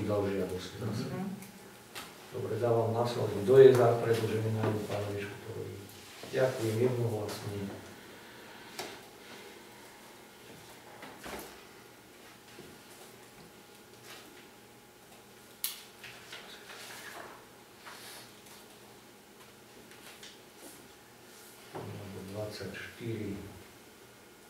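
A man speaks calmly to a small group.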